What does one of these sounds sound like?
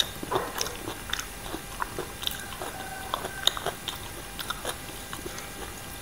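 Fingers squelch through shredded papaya salad close to a microphone.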